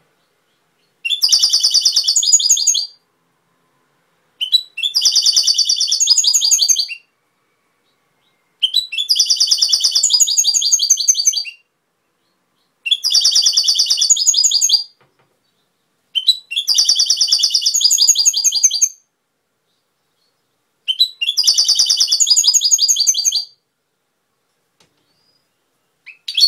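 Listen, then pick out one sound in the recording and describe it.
A small bird sings short, bright, twittering phrases again and again, with pauses between them.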